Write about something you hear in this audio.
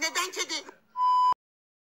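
A steady, high test tone beeps briefly, then cuts off.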